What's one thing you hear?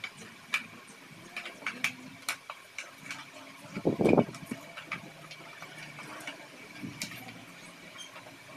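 Small plastic and metal parts click and clatter.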